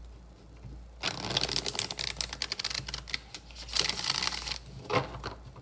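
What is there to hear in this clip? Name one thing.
Playing cards riffle and flutter rapidly as a deck is shuffled.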